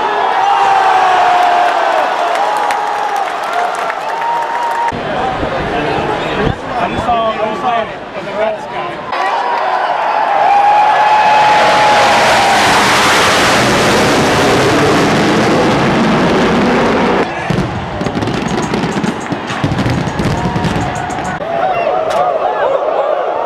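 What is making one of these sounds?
A large crowd cheers and shouts in a huge open stadium.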